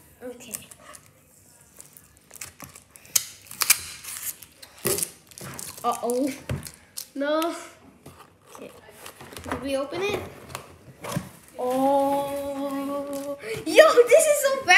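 A cardboard box scrapes and thumps on a wooden table.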